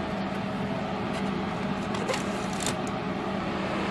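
A hand rustles through a cardboard box.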